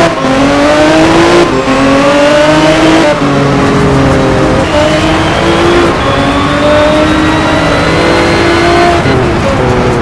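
A V12 race car engine accelerates hard, climbing in pitch through each upshift.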